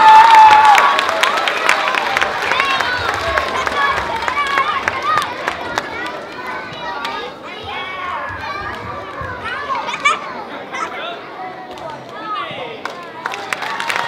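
Children on stage shout together.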